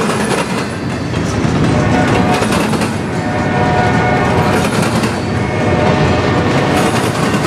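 A freight train rumbles and clatters loudly past at close range.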